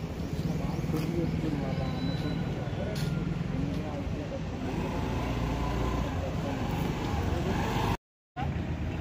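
A scooter engine idles close by.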